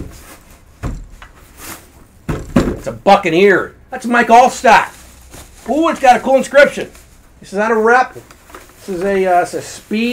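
Plastic wrap crinkles as it is peeled away.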